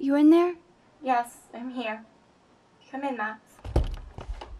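A young woman answers softly from behind a door.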